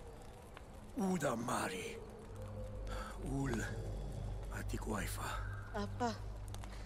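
A woman speaks slowly and gravely, close by.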